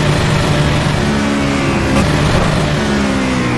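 A race car engine drops in pitch as the car slows down.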